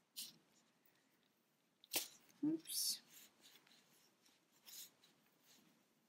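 Soft fibre stuffing rustles faintly as it is pushed in.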